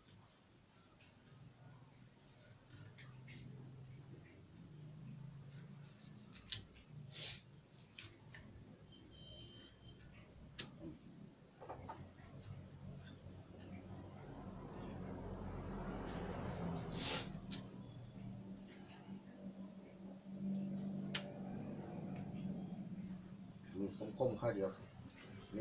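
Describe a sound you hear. A knife chops on a wooden board with sharp knocks.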